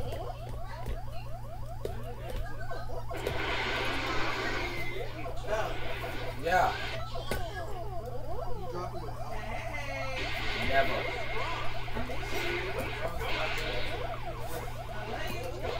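Electronic arcade game sound effects warble and chirp through a television speaker.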